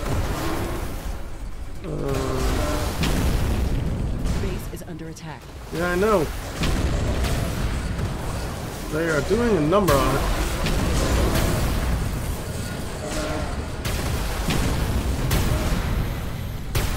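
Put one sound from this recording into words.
Explosions boom and crackle over and over.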